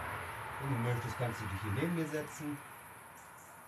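A young man speaks briefly and calmly close by.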